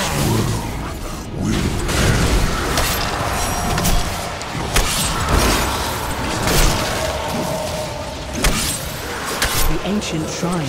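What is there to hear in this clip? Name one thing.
Magic blasts crackle and boom in a busy fight.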